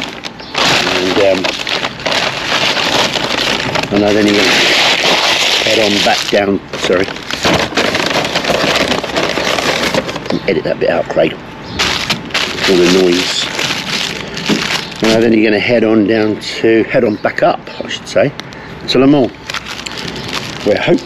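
An older man talks casually, close to the microphone.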